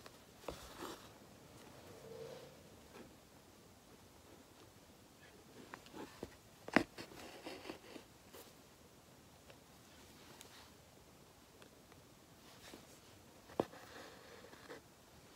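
Thread rustles and pulls through stretched fabric.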